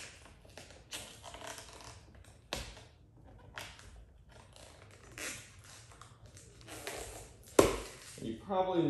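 Plastic film crinkles and rustles as it is peeled off.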